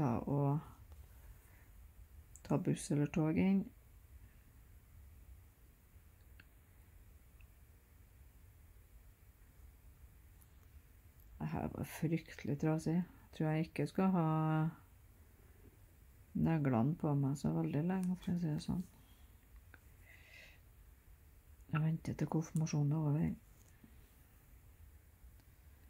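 A needle and thread are pulled softly through fabric.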